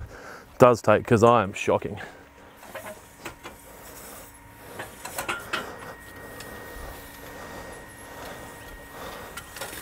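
A rake drags across sand.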